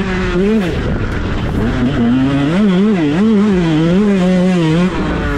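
Knobby tyres churn over loose dirt.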